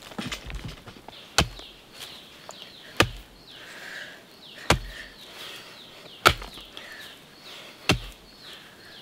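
A pickaxe thuds into hard earth in steady blows.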